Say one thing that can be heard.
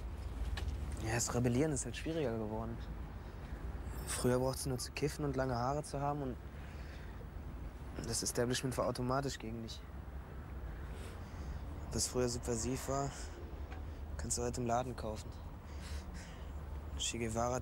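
A young man talks quietly close by.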